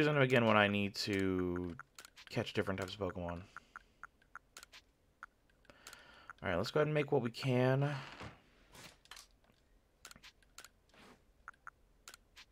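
Short soft menu clicks sound as selections move.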